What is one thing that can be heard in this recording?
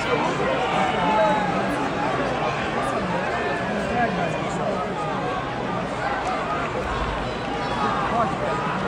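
A large crowd chatters and cheers in a big echoing arena.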